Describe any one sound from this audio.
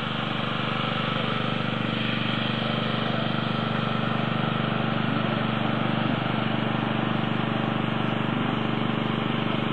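A tractor engine idles nearby with a steady low rumble.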